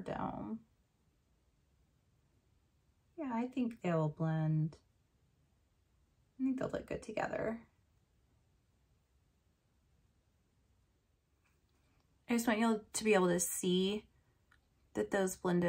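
A woman speaks calmly and close to a microphone, in short phrases with pauses.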